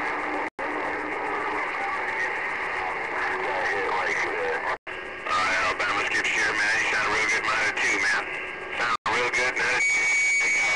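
A radio receiver crackles and warbles with static.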